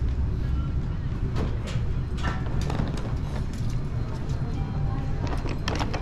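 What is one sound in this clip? A suitcase rolls along a hard floor.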